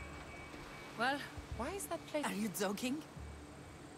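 A woman speaks calmly and clearly, close up.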